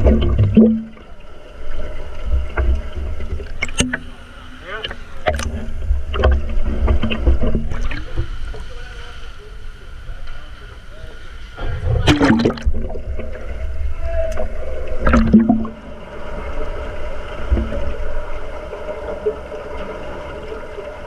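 Water rumbles and gurgles, heard muffled from underwater.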